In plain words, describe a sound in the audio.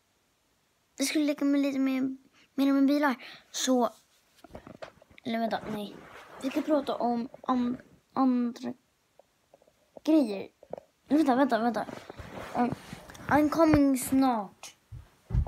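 A young boy talks close to the microphone, with animation.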